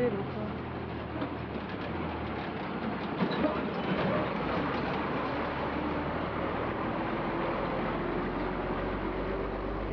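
A truck engine rumbles and chugs as the truck drives past slowly.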